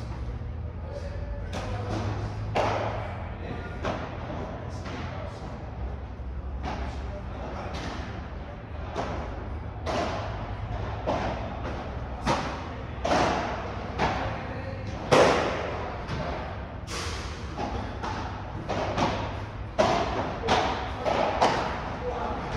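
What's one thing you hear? Padel balls bounce off the court and glass walls.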